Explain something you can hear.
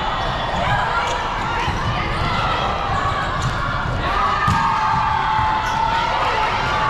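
Young women call out and shout in a large echoing hall.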